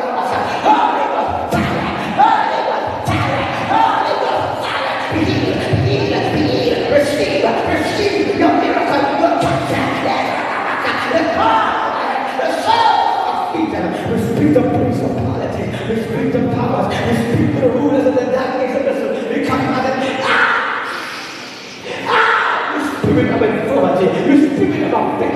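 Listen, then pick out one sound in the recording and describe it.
A man prays loudly and fervently into a microphone, heard through loudspeakers in an echoing hall.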